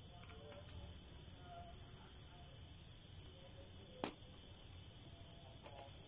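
Metal tools clink on a hard floor.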